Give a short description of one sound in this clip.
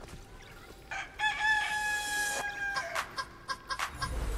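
A short electronic jingle plays.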